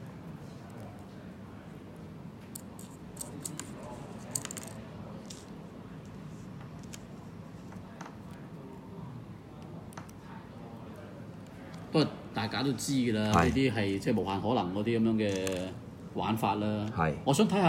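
Small plastic parts click and snap as a toy figure is handled.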